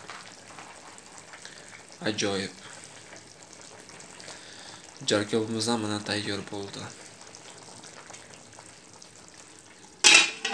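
Food simmers and bubbles softly in a pot.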